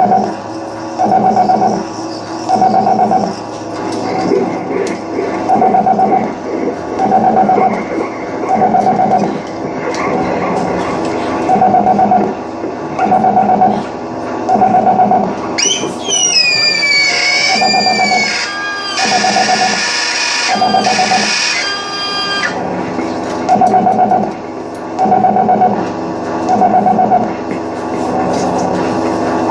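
Electronic music pulses in a steady, repeating rhythm through loudspeakers.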